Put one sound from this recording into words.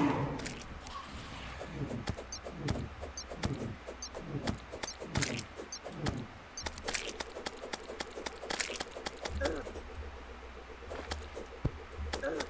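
Game sound effects zap and thump rapidly.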